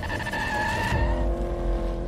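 A car's tyres screech as a wheel spins in smoke.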